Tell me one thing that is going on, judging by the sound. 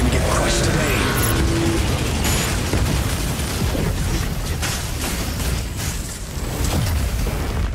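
Explosions boom and crackle in a game.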